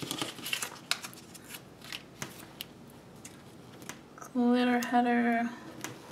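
Paper stickers crinkle and rustle under fingers.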